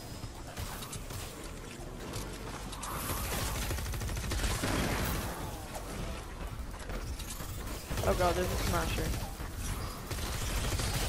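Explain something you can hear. Energy weapons fire in rapid bursts with crackling zaps.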